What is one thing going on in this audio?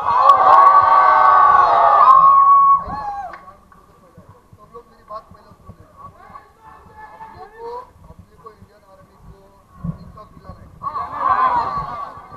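A crowd of young men shout and cheer loudly close by.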